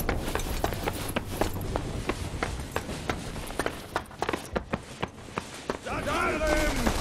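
Boots thud quickly on pavement as a soldier runs.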